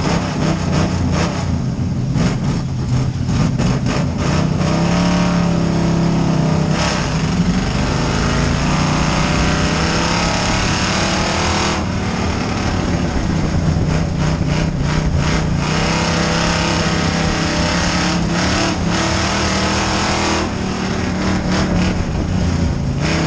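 Other race car engines roar past nearby.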